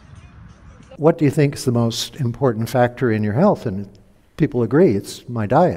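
An older man speaks calmly into a microphone.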